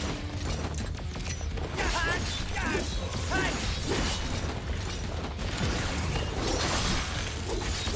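A sword swishes and clangs in rapid strikes.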